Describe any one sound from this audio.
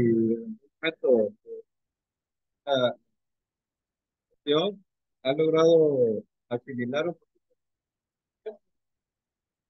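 A young man speaks calmly in short phrases over an online call.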